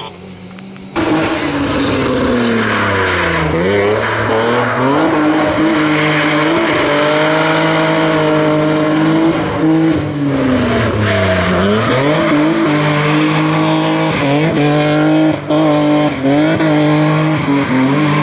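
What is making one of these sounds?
A racing car engine roars and revs hard, rising and falling in pitch.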